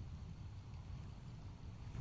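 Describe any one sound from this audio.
A fire crackles and roars softly.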